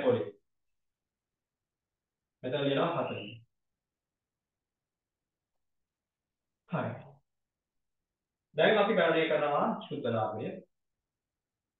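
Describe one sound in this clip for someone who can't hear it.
A man speaks calmly in short phrases, close by, with pauses between.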